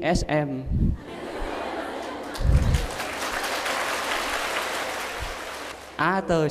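A crowd of young women laughs.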